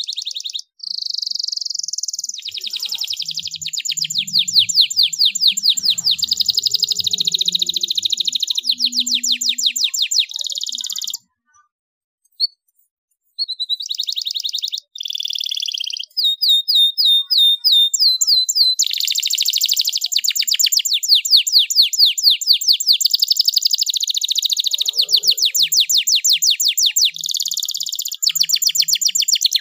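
A canary sings close by in fast, rolling trills and chirps.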